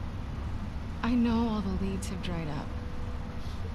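A young woman speaks in an upset, pleading voice.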